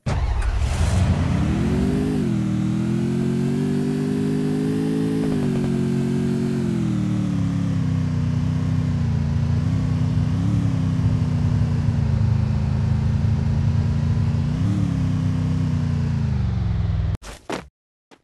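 A motorbike engine revs and hums steadily as it rides.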